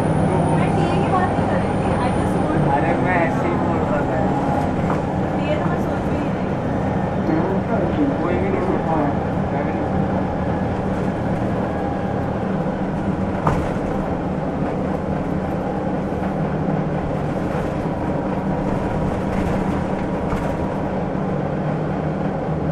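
A bus engine idles with a steady low rumble nearby.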